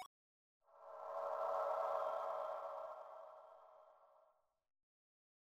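A soft chime rings and slowly fades.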